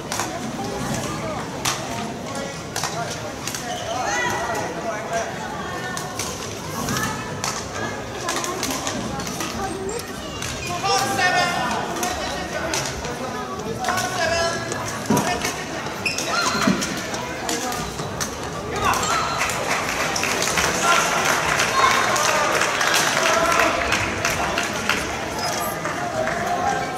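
Voices of a crowd chatter and call out in an echoing hall.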